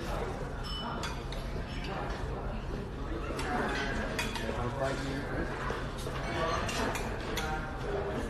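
Metal tongs click against a serving tray and a plate.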